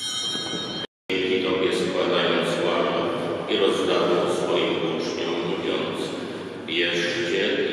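A man chants in a large echoing hall.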